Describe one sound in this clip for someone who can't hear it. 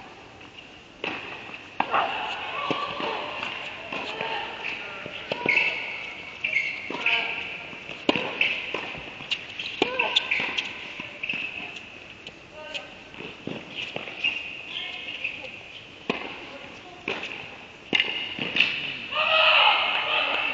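Tennis balls pop off rackets in a large echoing indoor hall.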